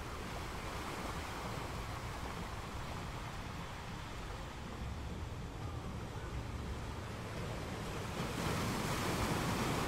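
Ocean waves roll in and crash steadily against rocks, swelling louder near the end.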